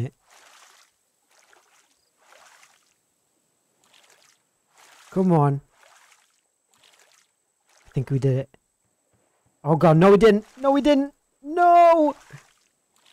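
A wooden paddle splashes softly in water with each stroke.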